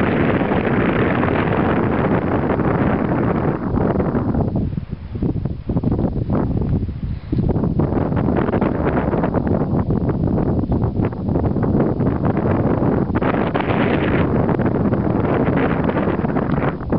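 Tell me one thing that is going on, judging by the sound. Strong wind buffets the microphone outdoors, with brief lulls.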